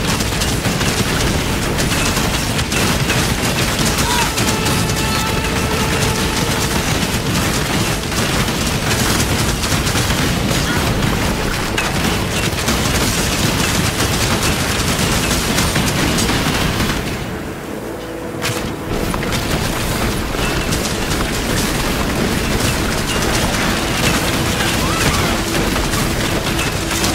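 Magic blasts crackle and explode in rapid bursts.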